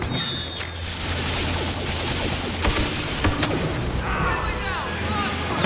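Electric lightning crackles and buzzes loudly.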